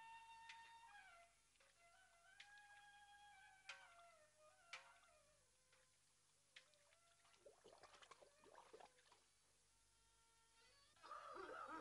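Clay pots splash into water.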